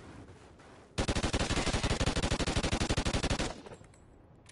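A rifle fires a long, rapid burst.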